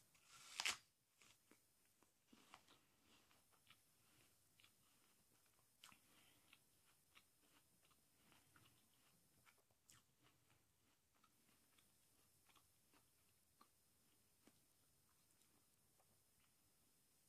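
A young woman chews an apple with soft, wet crunching close by.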